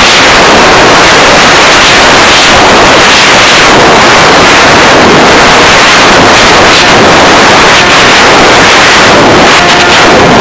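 Wind roars and buffets against a microphone on a flying radio-controlled model plane.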